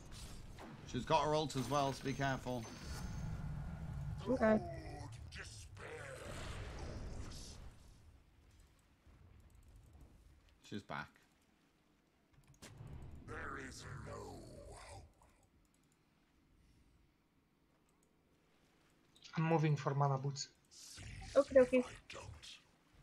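A man talks with animation, close to a microphone, in short bursts.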